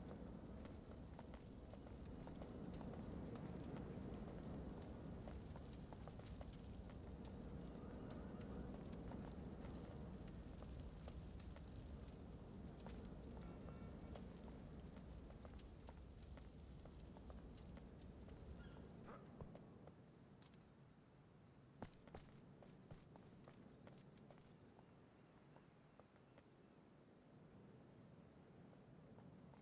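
Gunfire cracks in rapid bursts.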